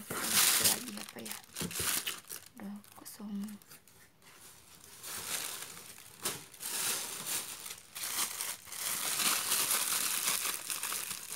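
Plastic bubble wrap crinkles and rustles in hands.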